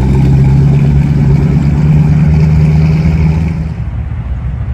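A hot rod coupe pulls away with a deep engine rumble.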